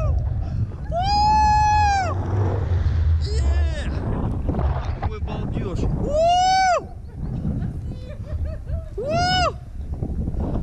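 A young man shouts out in long, high whoops close by.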